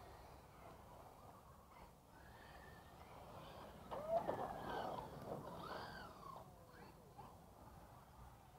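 Small tyres scrape and crunch over dirt.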